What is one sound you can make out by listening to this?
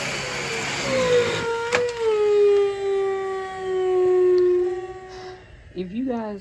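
A vacuum cleaner motor switches off and winds down with a falling whine.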